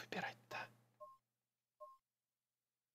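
Short electronic beeps sound twice.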